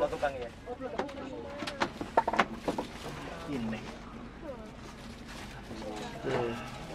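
A cardboard box rustles and taps as a hand handles it.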